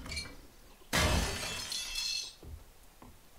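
A metal wrench bangs against a wall with a crash.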